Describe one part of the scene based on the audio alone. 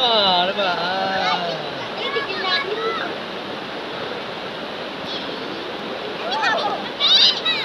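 Children shout and squeal playfully nearby, outdoors.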